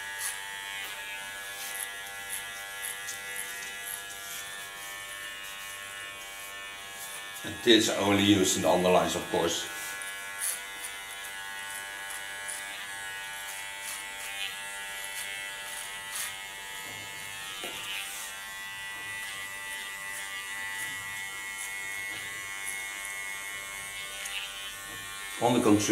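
Electric hair clippers buzz steadily close by.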